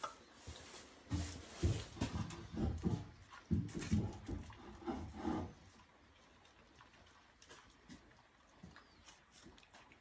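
A puppy chews and laps food noisily from a metal bowl close by.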